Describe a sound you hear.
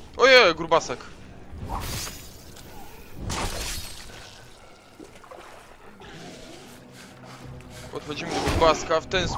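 A blade swishes and strikes with heavy thuds.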